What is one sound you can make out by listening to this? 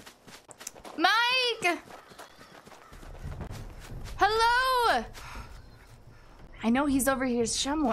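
A young woman speaks with animation close to a microphone.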